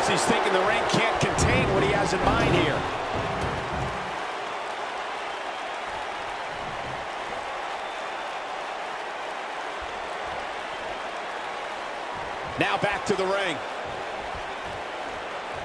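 A large crowd cheers and murmurs steadily in a big arena.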